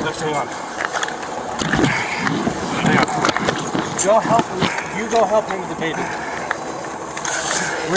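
A metal walker rattles and clanks as it is moved.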